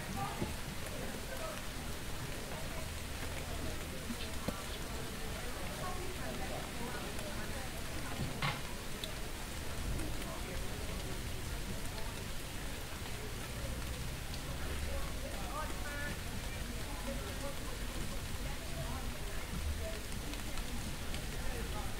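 People talk at a distance outdoors.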